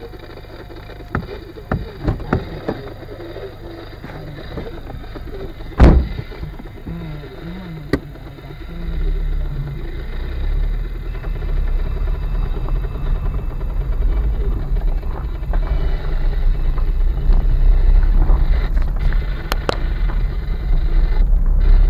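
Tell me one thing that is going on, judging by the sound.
A car engine rumbles low inside the car.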